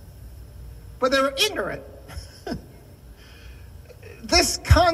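An elderly man preaches with animation into a microphone.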